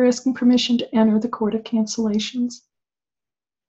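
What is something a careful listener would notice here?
An older woman speaks calmly into a microphone, heard as over an online call.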